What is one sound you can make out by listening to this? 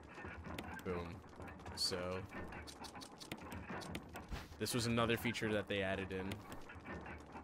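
A man talks casually, close to a microphone.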